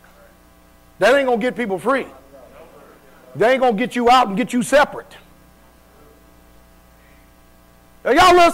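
A man preaches loudly into a microphone, in bursts with pauses.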